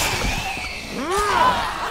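A zombie snarls and screeches up close.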